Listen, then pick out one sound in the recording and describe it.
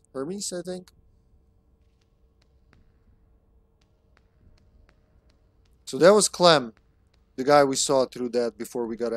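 A young man talks with animation close to a headset microphone.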